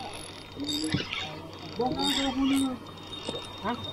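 A fishing reel whirs as the line is wound in.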